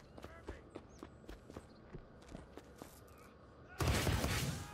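Quick footsteps run across hard ground.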